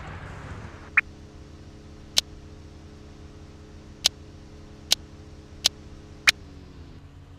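Menu buttons click sharply now and then.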